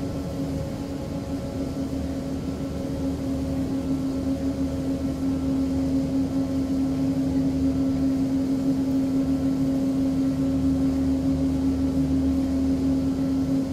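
An aircraft engine hums steadily and slowly grows louder.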